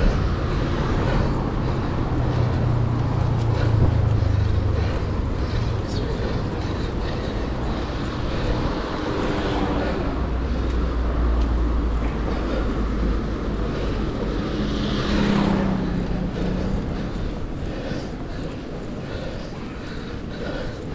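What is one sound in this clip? A bicycle rattles over the road.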